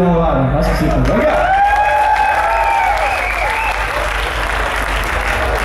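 A crowd cheers and applauds.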